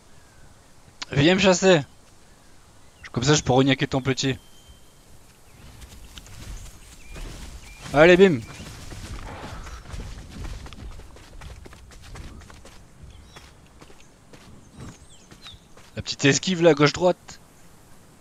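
A small dinosaur gives shrill, chirping calls in short bursts.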